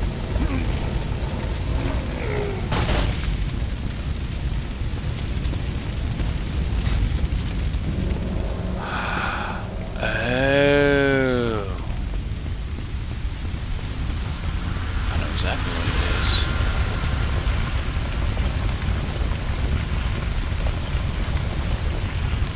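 Fire roars and crackles steadily.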